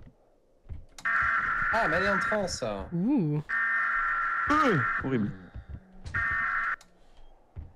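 An electronic alarm rings in loud, steady bursts.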